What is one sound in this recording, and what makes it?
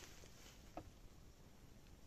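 A finger clicks a button on a car radio.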